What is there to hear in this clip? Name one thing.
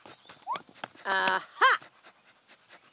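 A young girl talks cheerfully.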